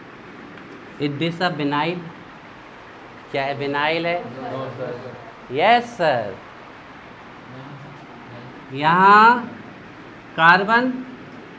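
A young man talks calmly, explaining in short bursts.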